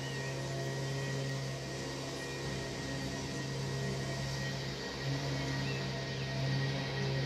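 Wind blows through trees outdoors.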